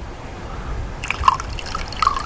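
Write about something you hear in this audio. Water trickles into a glass.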